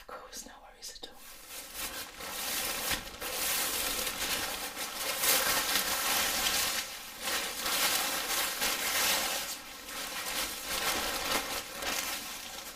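A cape rustles and crinkles loudly close by.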